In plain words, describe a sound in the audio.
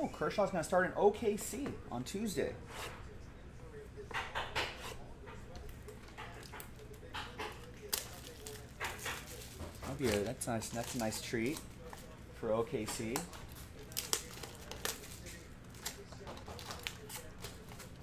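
Plastic wrappers crinkle as card packs are handled.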